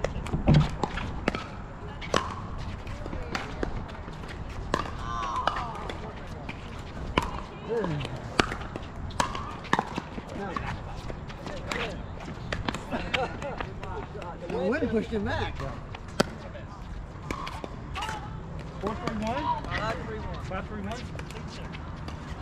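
Pickleball paddles hit a plastic ball with sharp, hollow pops in quick rallies.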